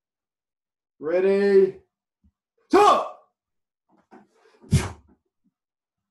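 A man shouts a sharp cry while striking.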